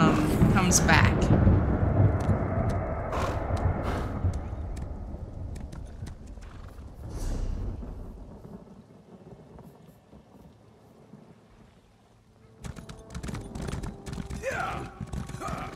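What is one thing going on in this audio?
A horse gallops, its hooves pounding on the ground.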